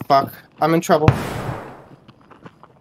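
A gun fires once with a loud, echoing bang.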